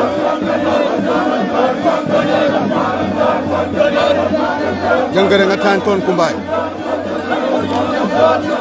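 A crowd of women and men sings loudly together outdoors.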